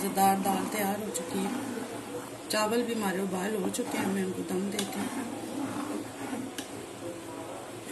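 A ladle stirs liquid in a metal pot.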